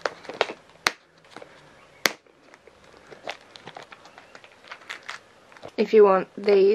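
Plastic storage cases click and rattle as hands handle them.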